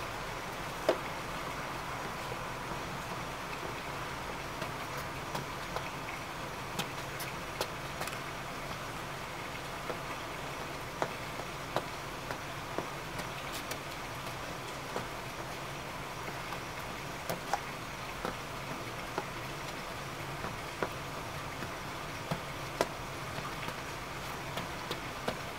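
Shoes step slowly on wet stone paving.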